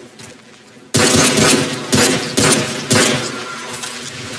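Gunshots ring out loudly in an echoing space.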